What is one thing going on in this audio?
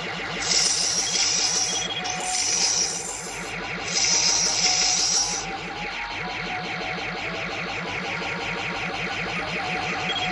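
An arcade game on a phone plays rapid shooting sound effects.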